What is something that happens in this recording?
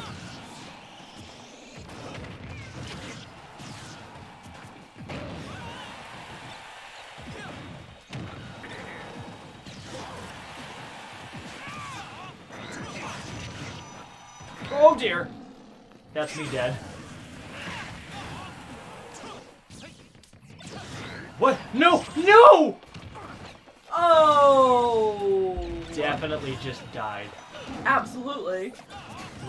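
Punches, blasts and explosions pop and crash in fast succession.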